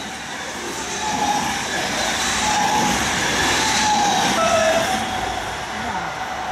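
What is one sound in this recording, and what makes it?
A train rumbles past close by, its wheels squealing on the tracks.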